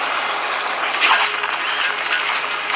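Plastic bricks clatter as a wall breaks apart.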